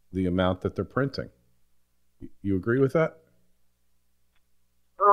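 A man speaks calmly and clearly into a microphone, with short pauses.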